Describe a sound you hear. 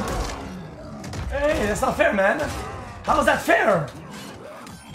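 Fighters grunt and yell with effort.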